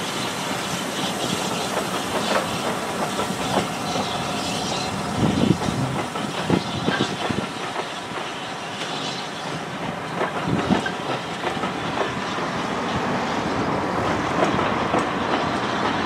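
Wheels clack over rail joints at uneven intervals.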